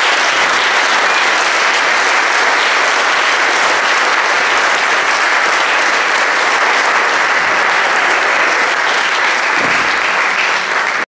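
A band plays electric guitars and drums in a large hall.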